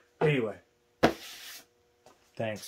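A hand slaps down on a cardboard box.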